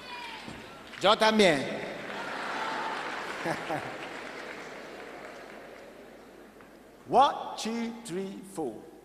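A man speaks loudly through a microphone in a large, echoing hall.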